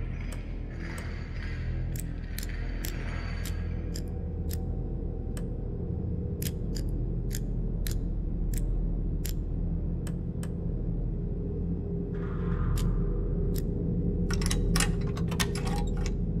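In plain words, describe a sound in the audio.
A metal lock dial clicks as it turns, again and again.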